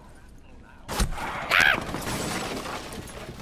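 Wooden boards crack and splinter as they break.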